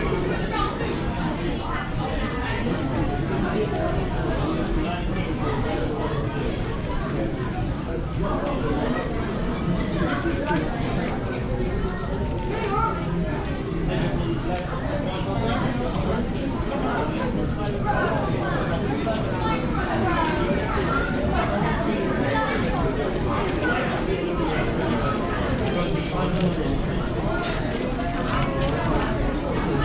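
A puzzle cube clicks and clatters rapidly as it is turned.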